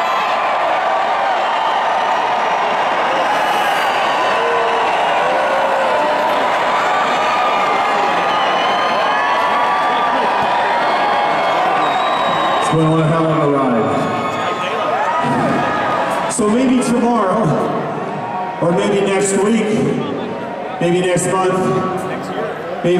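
A large crowd sings along loudly in a big echoing arena.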